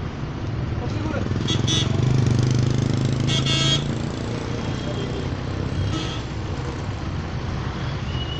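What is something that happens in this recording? A car engine hums as a car drives up a road nearby.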